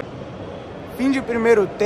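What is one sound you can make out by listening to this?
A woman speaks close to a phone microphone.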